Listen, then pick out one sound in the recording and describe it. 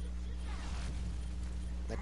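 Energy weapons fire in short bursts.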